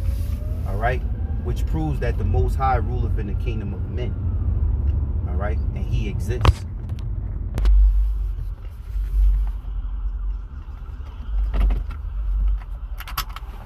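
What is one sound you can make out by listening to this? A car engine rumbles low and steady.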